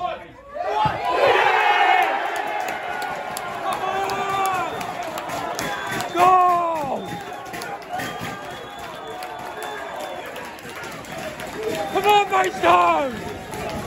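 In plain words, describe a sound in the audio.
A crowd of men cheers and shouts loudly nearby.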